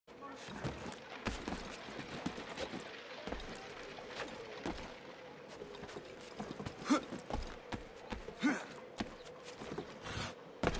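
Footsteps and hands scrape and thump on roof shingles and stone.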